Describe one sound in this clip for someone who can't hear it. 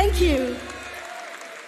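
A woman speaks loudly through a microphone.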